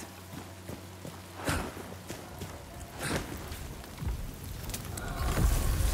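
Footsteps tread on a stone path.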